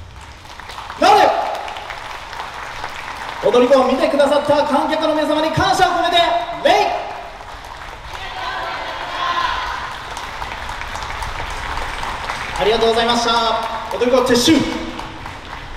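A group of young women and men shout together in chorus.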